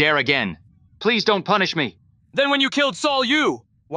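A man speaks calmly with slight echo.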